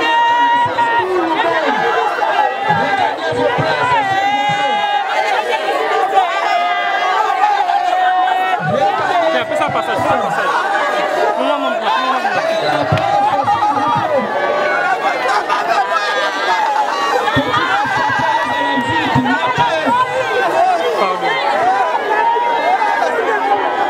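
A crowd of women sings and shouts together nearby.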